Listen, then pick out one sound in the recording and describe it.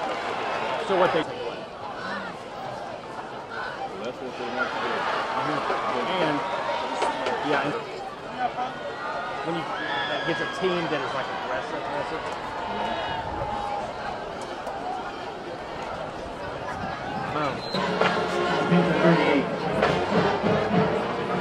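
A large crowd cheers and shouts in an open stadium.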